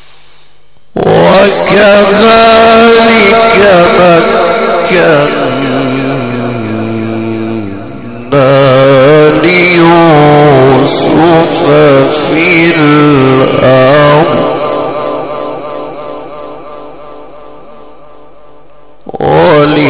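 A man chants in a long, wavering melodic voice through a microphone and loudspeakers, in a reverberant space.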